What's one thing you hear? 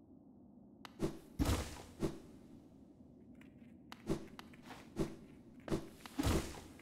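Heavy thuds and whooshes of a dashing figure land in quick bursts.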